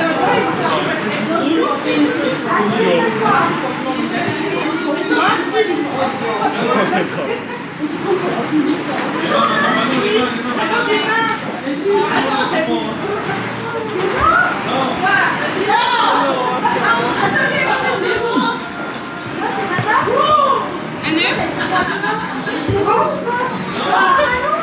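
A crowd of young people chatters and laughs nearby in an echoing room.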